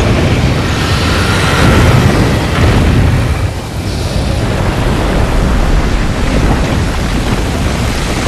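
Heavy explosions rumble and boom.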